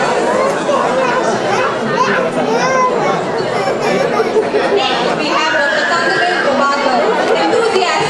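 A woman announces names over a loudspeaker in a large hall.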